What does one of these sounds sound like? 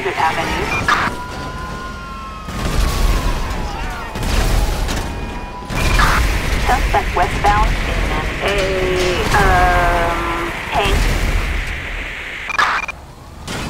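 A tank cannon fires loud booming blasts.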